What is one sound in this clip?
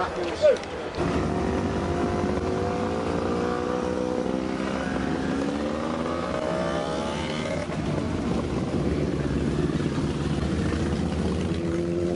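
Motorcycle engines rumble as bikes ride slowly past.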